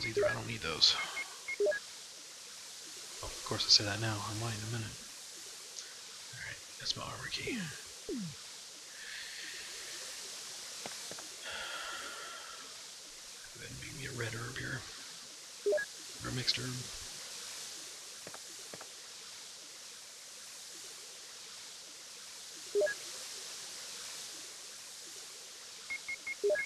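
Short electronic beeps sound as menu items are chosen.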